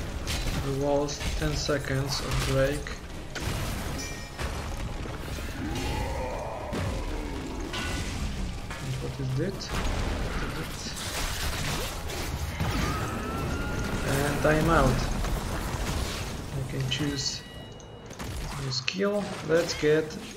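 Game combat sounds of spells and blasts clash throughout.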